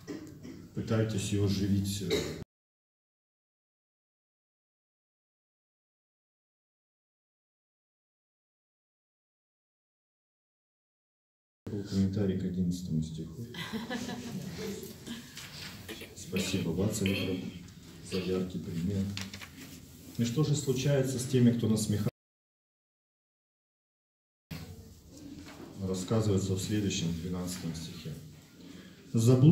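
A middle-aged man speaks calmly into a microphone, reading out and explaining.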